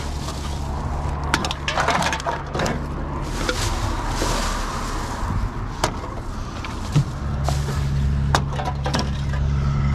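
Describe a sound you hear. Bottles and cans clink and clatter.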